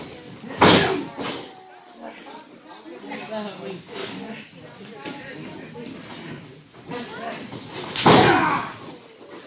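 Bodies slam hard onto a wrestling ring mat, echoing in a large hall.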